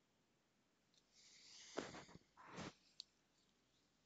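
Hands rub against a face close to a microphone, with brief rustling.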